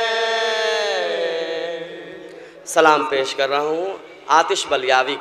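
A man sings loudly into a microphone, his voice ringing out over loudspeakers.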